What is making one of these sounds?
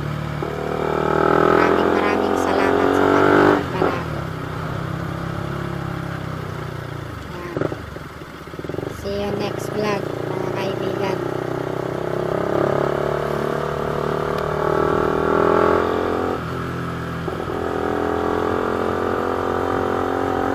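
A motorcycle engine hums and revs steadily up close.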